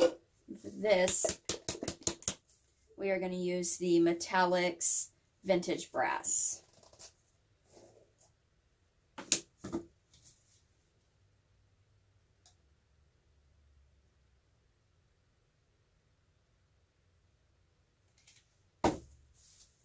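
Paint jars and plastic cups knock softly as they are set down on a wooden table.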